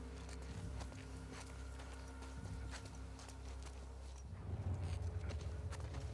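Footsteps crunch on wet ground.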